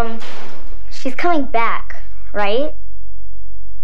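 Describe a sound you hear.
A young girl speaks nearby, her voice high and rising.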